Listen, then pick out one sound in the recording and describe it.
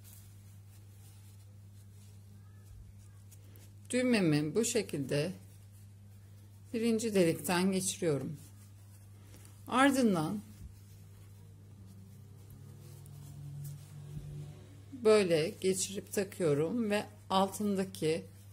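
Fabric rustles softly as a shirt cuff is handled and folded.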